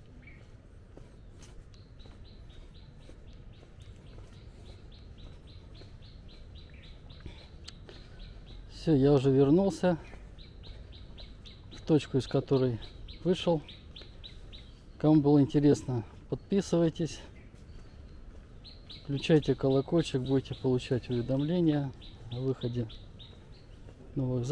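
Footsteps fall steadily on a dirt path.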